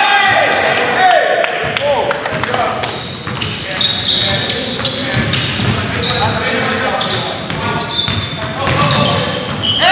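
Sneakers squeak sharply on a hard floor in a large echoing gym.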